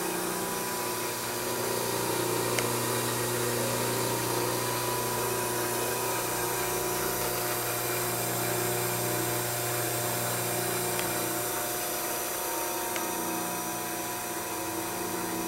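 A bench grinder motor hums steadily close by.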